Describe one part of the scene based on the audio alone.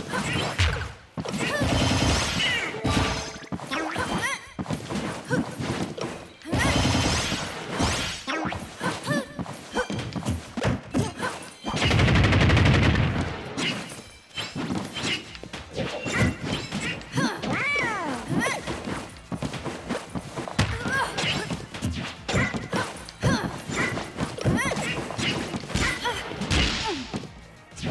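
Cartoonish fighting sounds of hits, swipes and blasts come quickly one after another.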